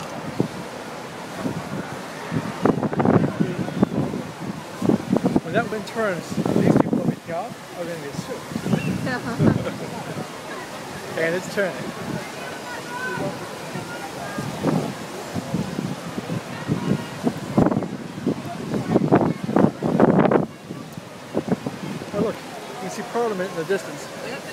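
A fountain splashes steadily into a pool.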